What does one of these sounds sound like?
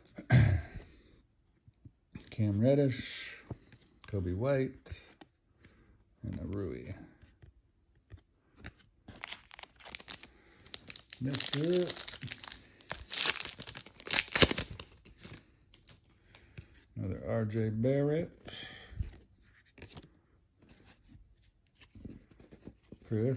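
Trading cards slide and rustle against each other in hands.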